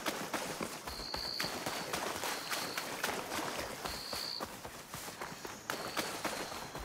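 Footsteps crunch steadily over leaves and soft ground.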